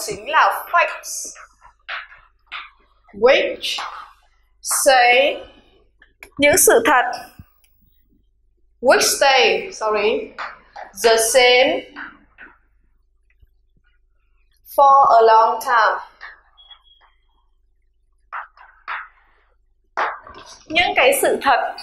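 A young woman speaks into a microphone, explaining.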